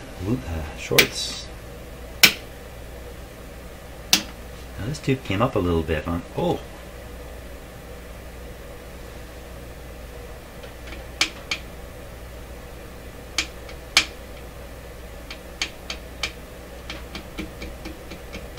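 Knobs click sharply as they are turned by hand.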